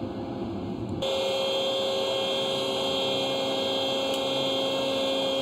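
A pump motor hums steadily.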